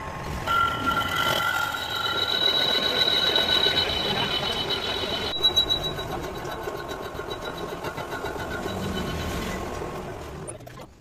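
A metal lathe cuts a spinning steel shaft with a high, ringing whine.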